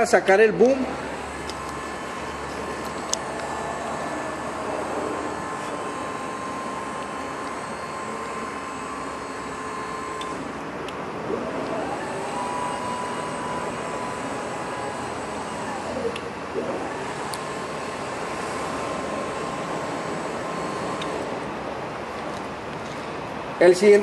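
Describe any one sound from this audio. An electric lift motor hums steadily as a boom arm moves.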